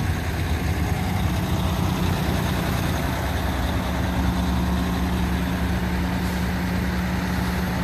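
A parked fire truck engine idles with a low hum.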